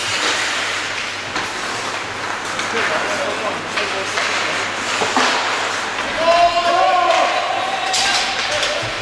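Ice skates scrape and carve across ice in an echoing rink.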